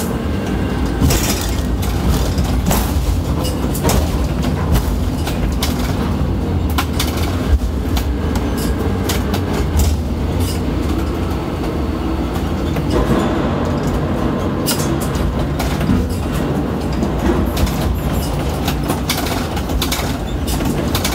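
Steel clanks and knocks sharply now and then.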